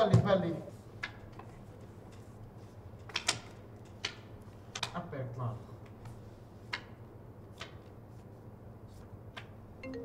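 Playing cards click and snap as they are handled.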